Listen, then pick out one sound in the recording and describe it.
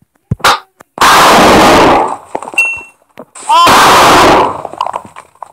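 Loud explosions boom in short bursts.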